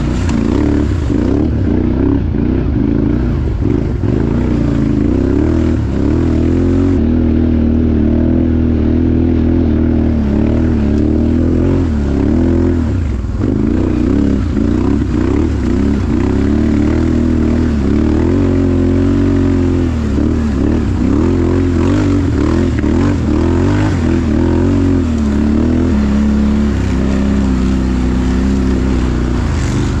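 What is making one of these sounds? A quad bike engine revs and labours close by, rising and falling in pitch.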